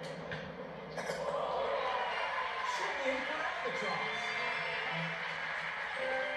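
A crowd cheers and applauds in a video game.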